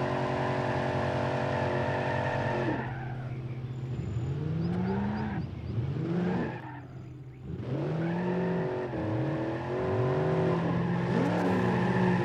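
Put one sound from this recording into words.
A car engine roars and revs up and down repeatedly.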